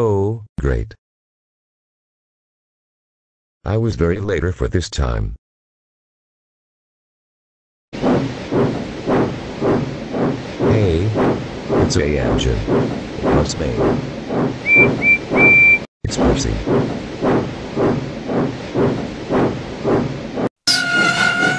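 A young boy's voice speaks in a flat, computer-generated tone.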